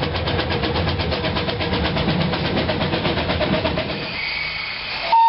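A steam engine chuffs steadily.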